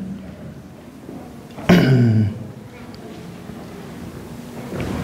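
A man reads aloud in a large, echoing room.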